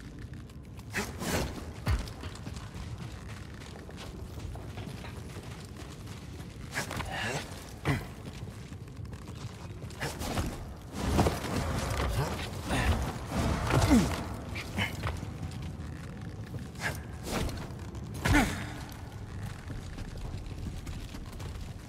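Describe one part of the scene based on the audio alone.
Footsteps thud on stone as a figure runs and jumps.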